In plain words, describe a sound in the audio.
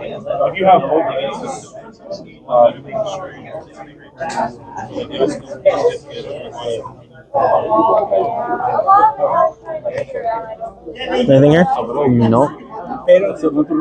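Playing cards riffle and slap softly as they are shuffled by hand.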